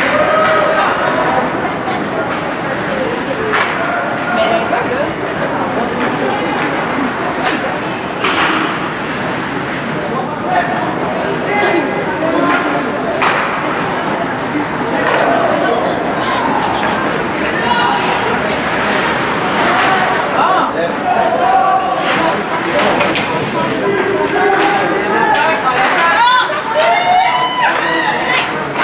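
Skates scrape and glide across ice in a large echoing rink.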